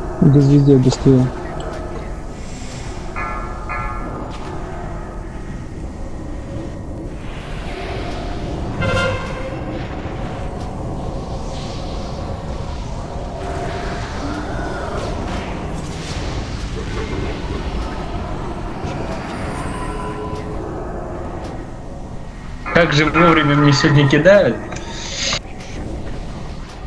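Magic spells whoosh and crackle during a battle.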